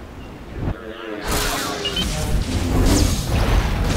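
Lightsabers clash and crackle in a fight.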